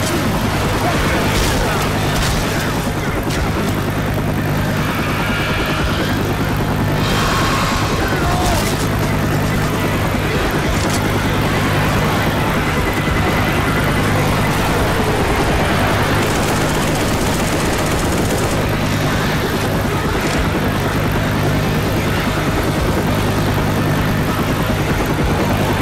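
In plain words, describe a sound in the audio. A crowd of zombies growls and shrieks.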